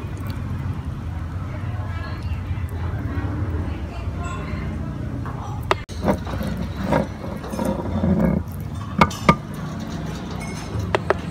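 Soft wet fat squishes between fingers.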